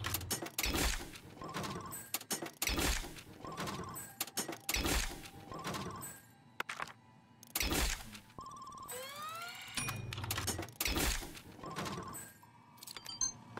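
Short bright electronic chimes ring again and again.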